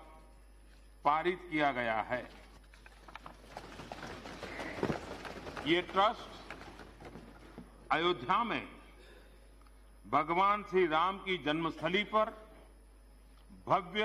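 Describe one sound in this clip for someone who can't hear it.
An elderly man speaks calmly and deliberately into a microphone in a large hall.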